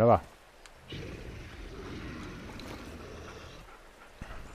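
A wolf growls close by.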